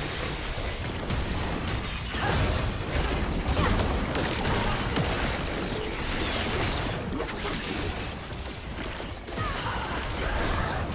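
Game spell effects crackle and burst in a busy fight.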